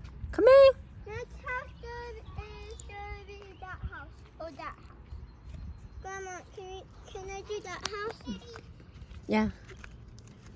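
A young girl talks and calls out excitedly nearby.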